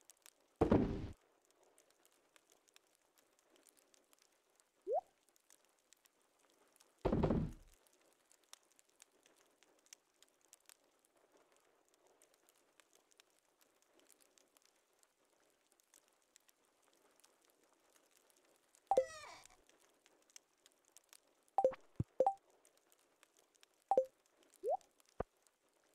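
Short electronic chimes and pops sound now and then as game menus open and close.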